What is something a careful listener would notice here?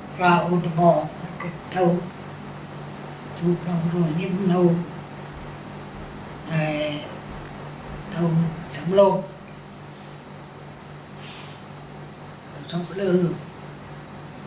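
An elderly man speaks slowly and haltingly, close by.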